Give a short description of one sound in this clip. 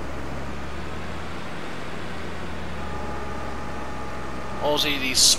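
A forestry harvester's diesel engine hums steadily.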